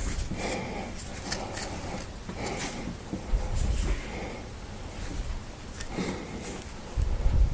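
Fingers rub and tap against a small pocket knife close up.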